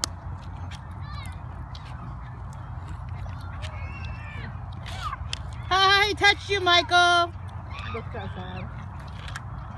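Young children shout and call out to each other nearby outdoors.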